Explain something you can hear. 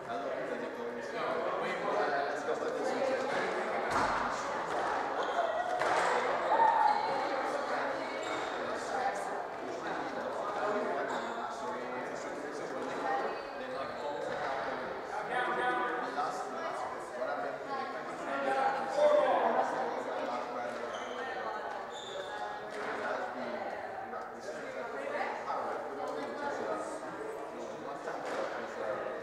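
A crowd of spectators murmurs and chats nearby.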